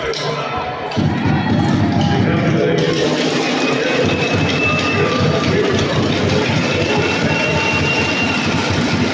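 A drum beats in the stands.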